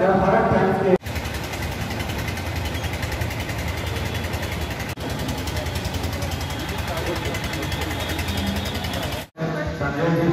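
A crowd of people murmurs and shuffles outdoors.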